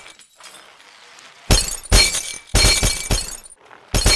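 Glass bottles shatter.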